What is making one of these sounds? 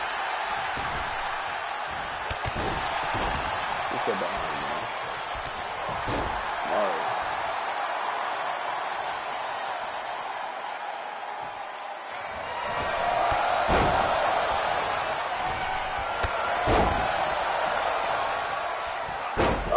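A large crowd cheers and roars steadily, swelling louder later on.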